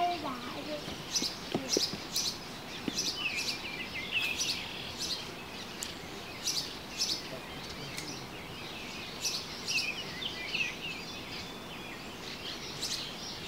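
Water trickles gently beneath a bridge.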